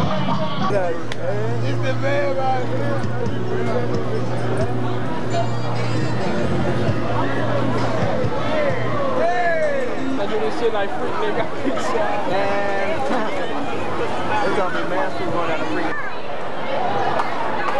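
A crowd of men and women chatter loudly all around outdoors.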